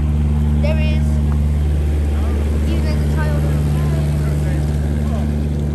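A boat engine drones steadily close by.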